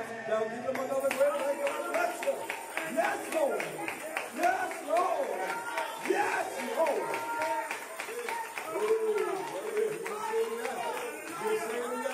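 Hands clap in a steady rhythm.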